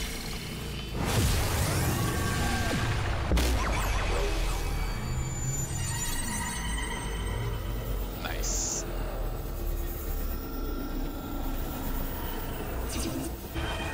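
A deep magical whoosh and rumble swells.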